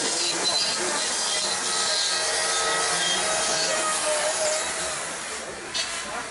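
A chainsaw buzzes as it cuts into wood.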